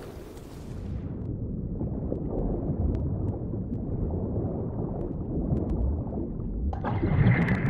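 A low, muffled rumble fills the water.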